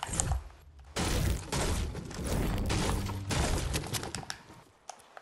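A pickaxe strikes with sharp knocks.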